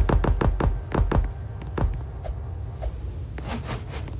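Game blocks pop into place with quick soft clicks.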